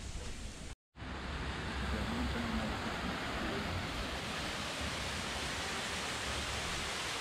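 A stream of water trickles and gurgles.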